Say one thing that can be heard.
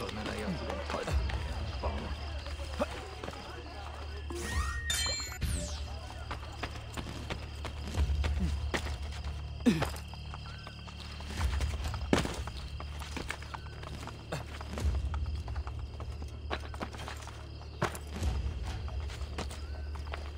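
Hands grab stone ledges with soft thuds while climbing.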